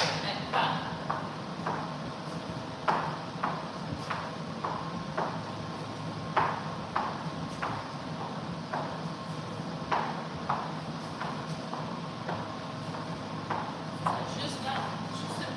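Shoes tap and shuffle on a wooden floor.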